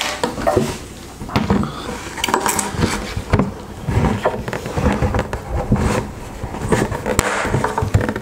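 A plastic bucket thumps and rattles as a man handles it.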